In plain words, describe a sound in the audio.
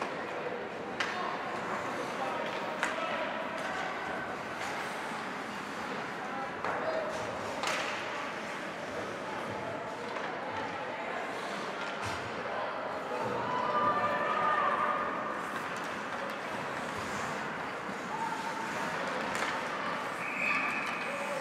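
Hockey sticks clack sharply against a puck.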